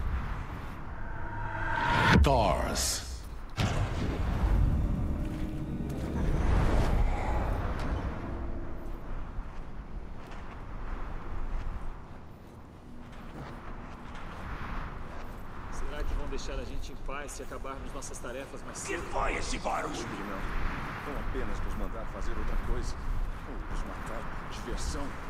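A man talks calmly and close into a headset microphone.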